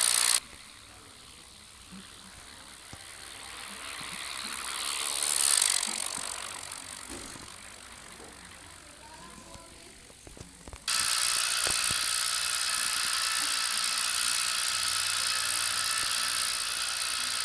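An airplane engine drones steadily.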